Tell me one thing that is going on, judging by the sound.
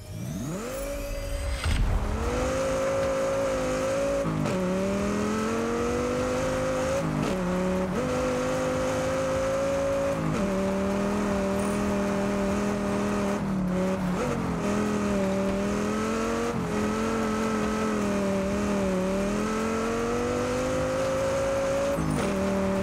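A car engine revs hard, rising and dropping in pitch as the gears shift.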